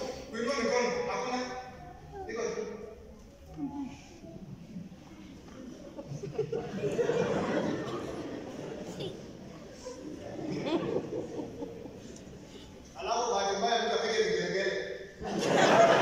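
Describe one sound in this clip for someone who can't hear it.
A man sings and chants through a microphone in an echoing hall.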